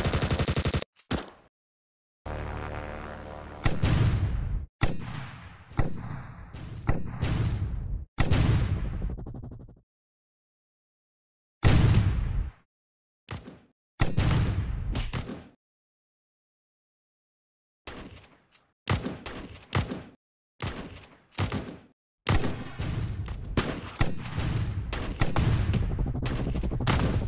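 A heavy gun fires loud booming shots in a video game, each one echoing away.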